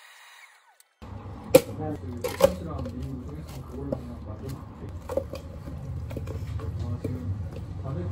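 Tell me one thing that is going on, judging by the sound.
Milk pours and splashes into a cup.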